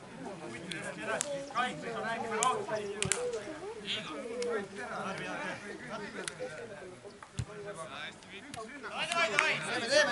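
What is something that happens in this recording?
Young football players shout and call to each other across an open field.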